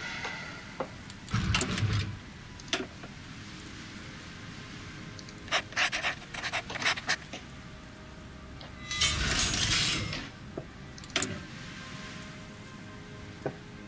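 Soft interface clicks and chimes sound as menus open and close.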